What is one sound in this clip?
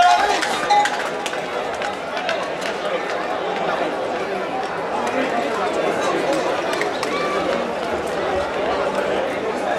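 Hooves clatter on the road as a bull runs.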